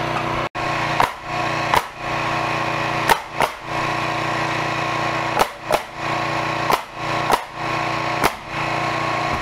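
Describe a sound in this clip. A nail gun fires sharp bangs into wood, one shot at a time.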